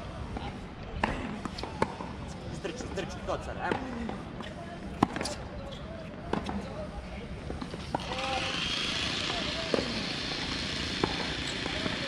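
Tennis balls are hit with rackets in sharp pops at a distance.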